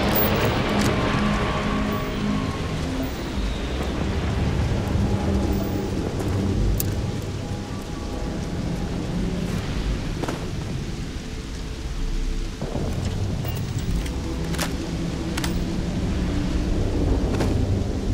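Footsteps crunch on rocky ground.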